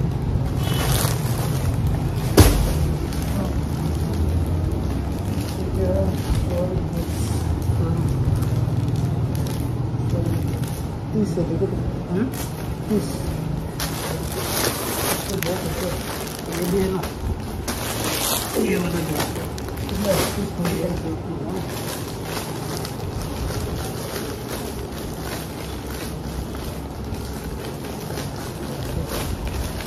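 Plastic packaging rustles and crinkles as it is handled.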